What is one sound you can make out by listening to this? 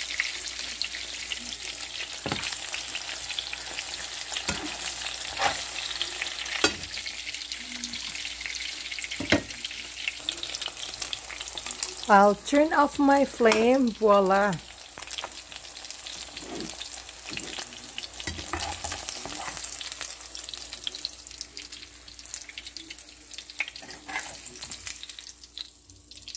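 Eggs sizzle in hot oil in a frying pan.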